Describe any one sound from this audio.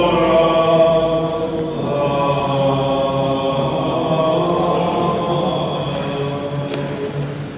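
A man chants in a steady, sustained voice in an echoing hall.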